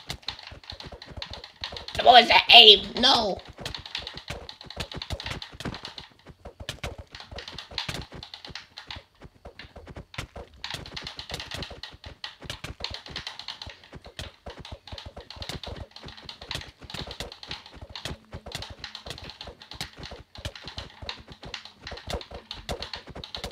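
Controller buttons click rapidly and steadily.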